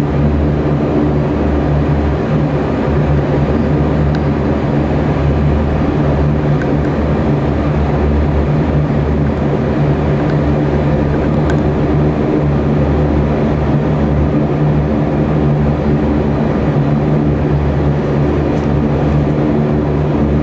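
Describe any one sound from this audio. A propeller engine drones loudly and steadily close by.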